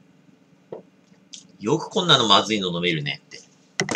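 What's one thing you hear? A glass is set down on a table.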